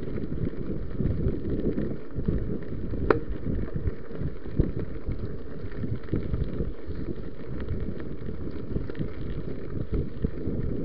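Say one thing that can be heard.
A bicycle frame rattles over bumps.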